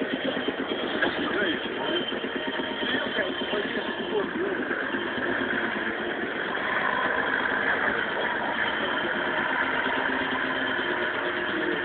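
Big tyres churn through snow and mud.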